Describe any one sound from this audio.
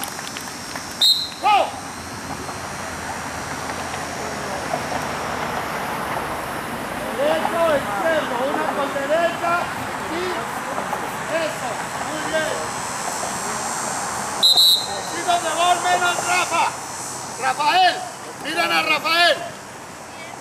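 Young children shout and chatter outdoors.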